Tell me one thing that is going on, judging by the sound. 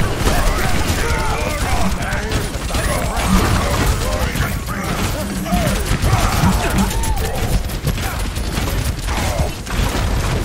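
A heavy gun fires in rapid bursts of blasts.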